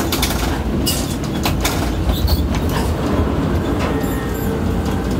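Tractor engines rumble steadily in a large echoing space.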